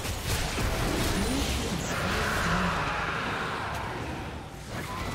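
Video game spell blasts and hits crackle and whoosh during a fight.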